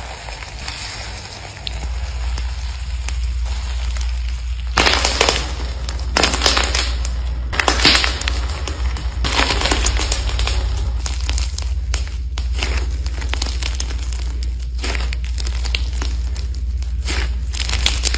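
Hands squish and crunch a soft, crumbly clay, with crackling and squelching sounds.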